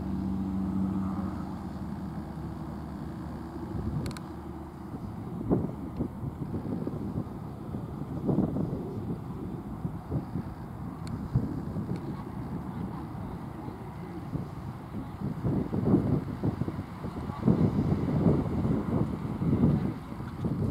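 A horse's hooves thud softly on sand in a steady trot.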